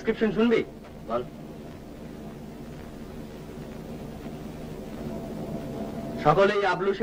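A car hums from inside as it drives.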